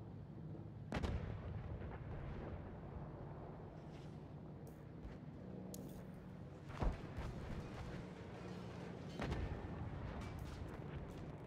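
A rifle fires single loud shots that echo and roll away.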